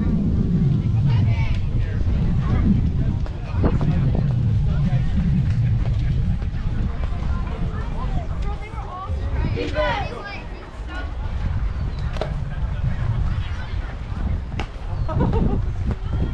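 Young players call out and cheer at a distance.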